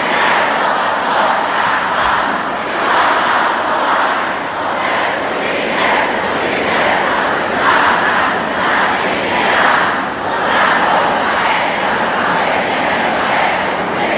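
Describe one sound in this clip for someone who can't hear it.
A large crowd cheers and shouts loudly in a big echoing venue.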